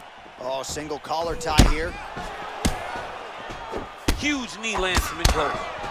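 Punches thud against a body in quick bursts.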